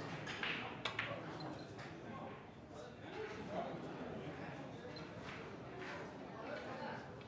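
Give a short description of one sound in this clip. A cue strikes a snooker ball with a sharp tap.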